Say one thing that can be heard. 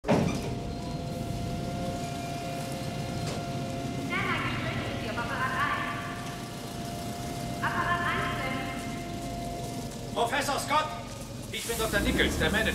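Machinery hums steadily in a large hall.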